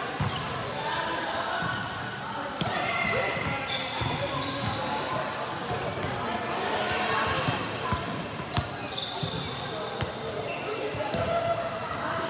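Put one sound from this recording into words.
Young men call out and chatter in a large echoing hall.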